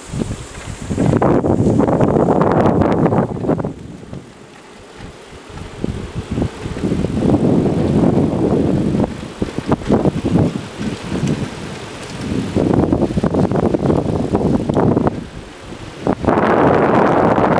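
Wind buffets loudly past the microphone.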